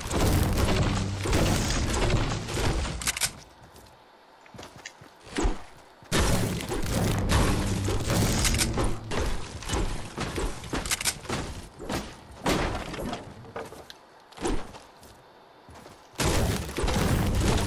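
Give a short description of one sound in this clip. A pickaxe strikes stone and wood with repeated sharp thuds.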